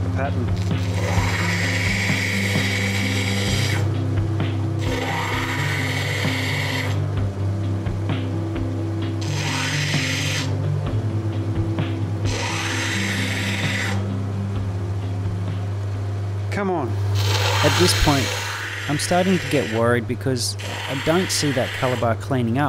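A stone grinds against a spinning wheel with a rasping hiss.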